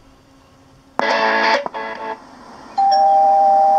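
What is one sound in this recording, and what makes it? A tape player plays sound through its small speaker.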